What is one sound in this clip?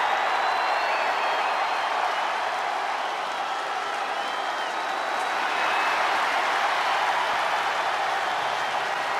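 A large arena crowd cheers loudly and steadily.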